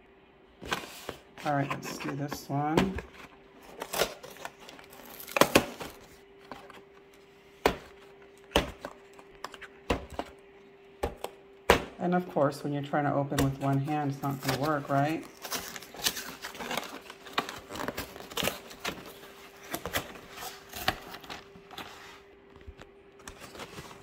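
A cardboard box crackles and thumps as a hand handles it.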